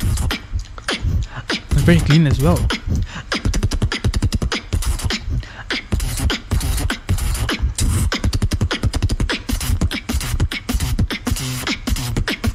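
A young man beatboxes fast, punchy drum sounds into a microphone.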